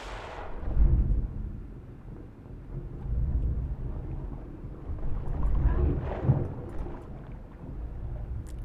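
Water swirls and rumbles with a deep, muffled sound, as if heard underwater.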